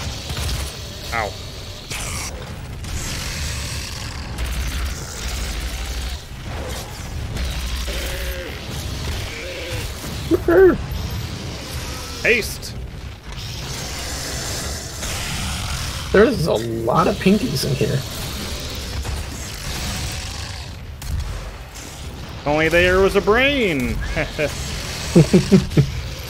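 Monsters roar and growl.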